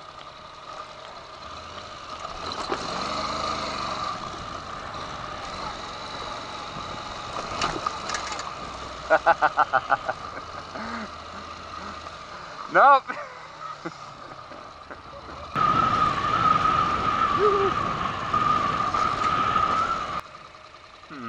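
A motorcycle engine hums and revs up close.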